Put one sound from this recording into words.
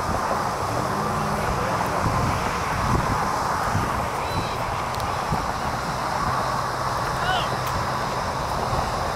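Young men shout to each other in the distance.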